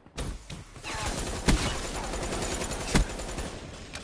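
Gunshots fire in a video game.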